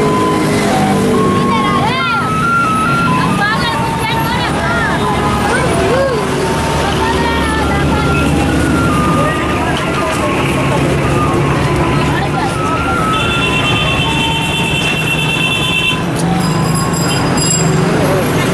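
A crowd of men and women chatter in the background.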